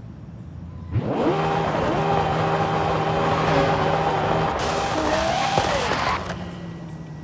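A car engine roars loudly as it revs and speeds up, then suddenly drops away.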